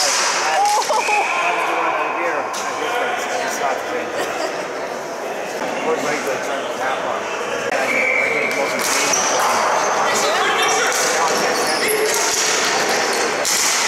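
Players' shoes squeak sharply on the floor.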